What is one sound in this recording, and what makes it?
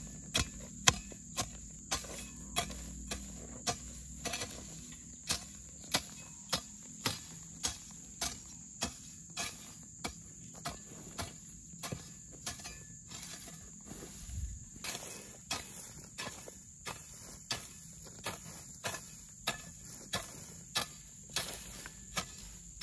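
A hoe chops into dry ground with regular thuds.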